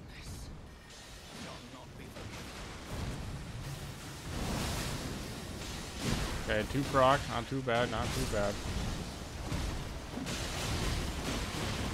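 Magic blasts burst and crackle.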